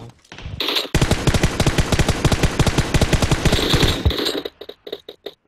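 A rifle fires in rapid, rattling bursts close by.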